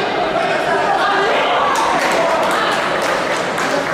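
A judo throw lands with a thud on a mat.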